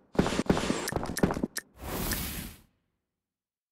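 A video game plays a burst of magical whooshing sound effects.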